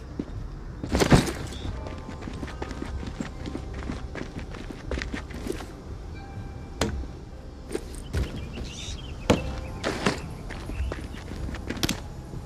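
Footsteps tread on hard pavement.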